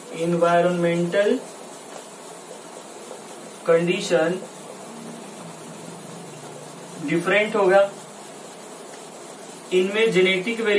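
A young man speaks calmly in short phrases, close by.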